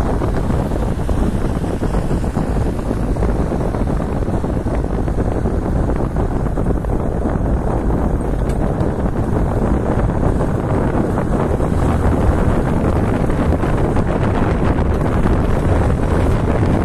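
A car's engine hums steadily while driving.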